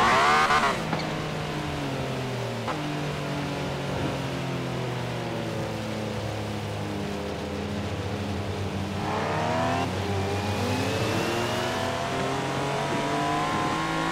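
A car engine hums steadily, dropping in pitch as it slows and then revving higher as it speeds up again.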